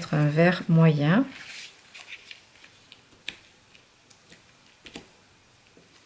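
Paper rustles and taps softly against a table.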